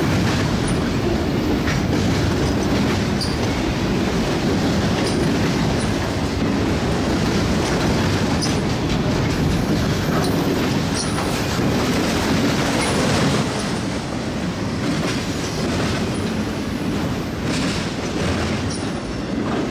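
A freight train rumbles steadily past.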